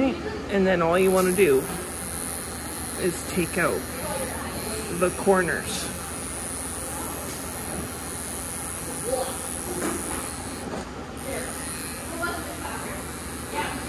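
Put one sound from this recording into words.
Electric clippers buzz with a steady high whine.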